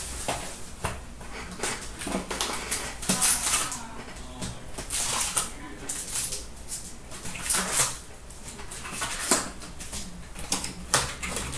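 A cardboard pack rustles and crinkles as hands open it.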